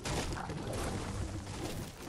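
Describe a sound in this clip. A pickaxe swings through the air.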